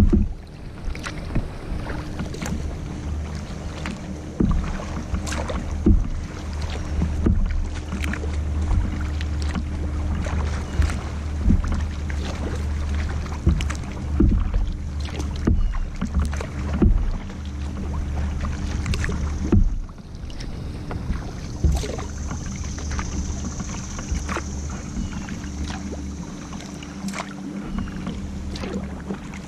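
Wind rumbles across the water.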